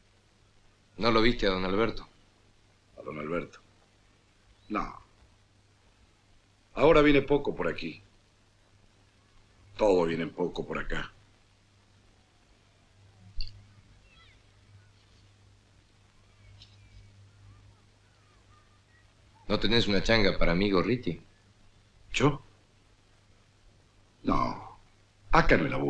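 A man speaks calmly nearby in short phrases with long pauses.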